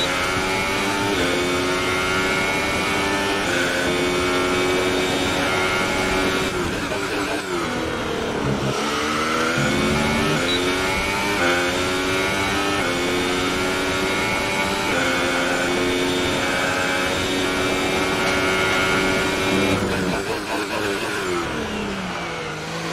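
A racing car engine screams loudly, rising in pitch through each gear and dropping sharply when braking.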